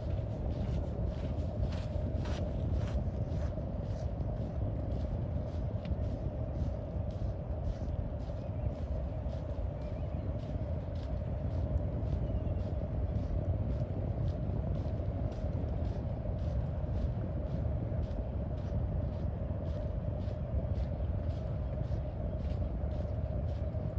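Footsteps tread steadily on a concrete path.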